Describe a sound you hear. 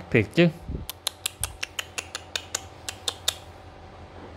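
Hands handle a fishing rod with light clicks and taps.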